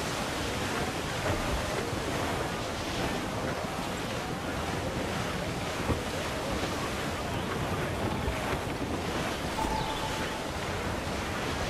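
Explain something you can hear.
Strong wind roars steadily across open water.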